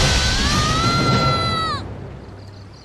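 A young girl screams loudly and shrilly, close by.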